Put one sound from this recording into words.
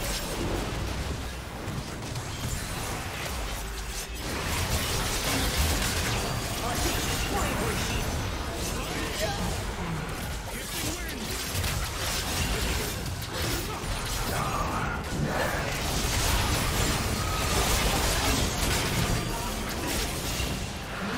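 Spell effects whoosh and blast in a busy game fight.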